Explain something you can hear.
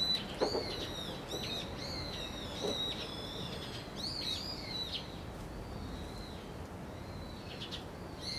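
A rooster pecks at a wooden lid with soft knocks.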